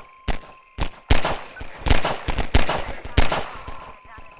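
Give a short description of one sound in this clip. A pistol fires several sharp shots with echoing cracks.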